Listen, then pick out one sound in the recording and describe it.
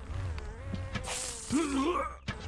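A large insect buzzes loudly nearby.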